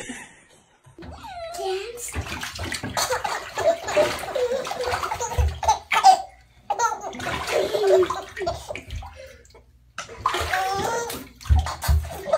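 A baby giggles and laughs heartily close by.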